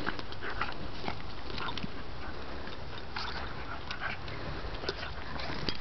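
Two dogs growl and snarl playfully.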